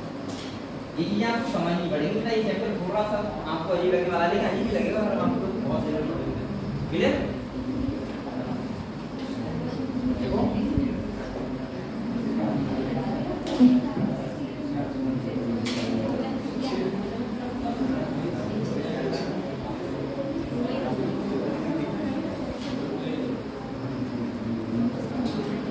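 A young man speaks steadily, explaining in an echoing room.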